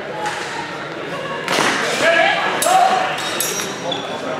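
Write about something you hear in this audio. Steel swords clash and clatter.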